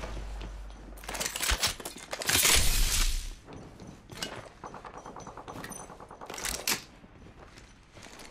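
Footsteps clatter on a metal floor.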